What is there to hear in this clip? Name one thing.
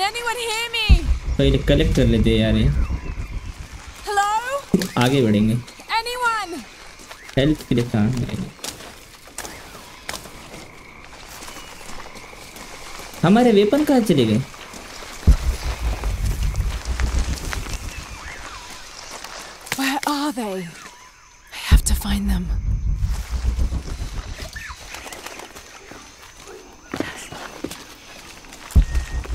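Footsteps rustle through dense leaves.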